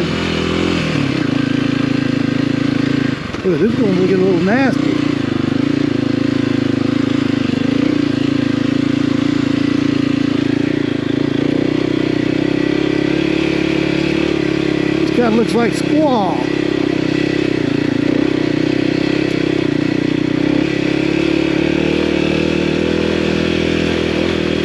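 Motorcycle tyres rumble and crunch over rough dirt and stones.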